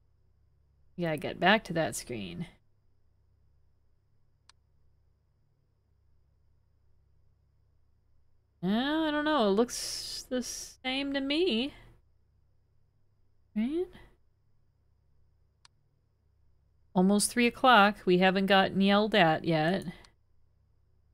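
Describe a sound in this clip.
A young woman talks into a microphone in short bursts.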